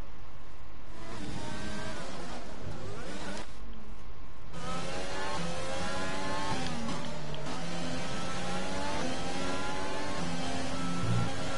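A racing car engine screams at high revs, rising and dropping in pitch with each gear change.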